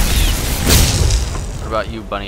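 A fiery blast bursts and crackles.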